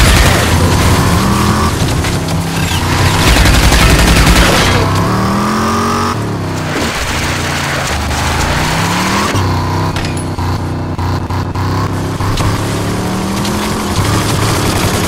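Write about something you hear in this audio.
A car engine roars and revs up and down as it races over rough ground.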